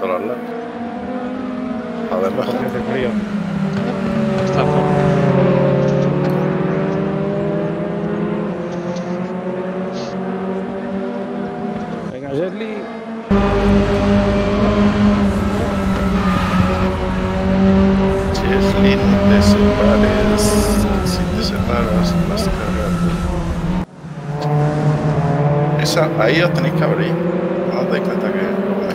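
Racing car engines roar and whine as they speed around a track.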